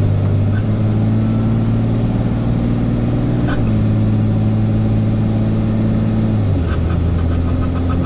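Tyres hum on the road.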